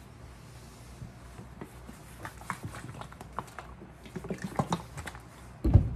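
Liquid sloshes inside a shaken plastic bottle.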